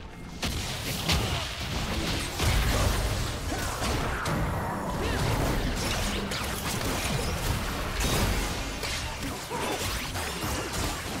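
Fantasy battle effects whoosh, zap and clash in quick bursts.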